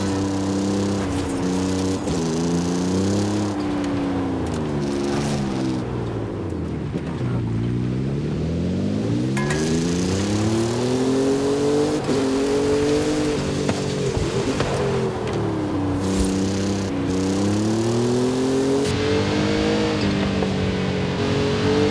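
Tyres crunch and skid on loose dirt.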